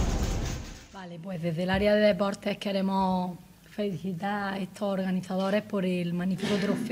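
A woman speaks calmly into microphones.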